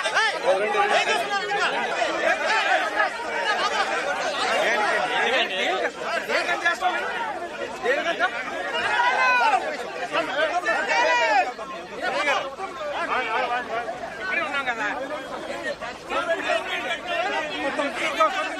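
Men talk excitedly close by.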